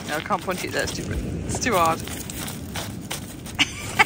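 Pebbles crunch and clatter under a dog's paws.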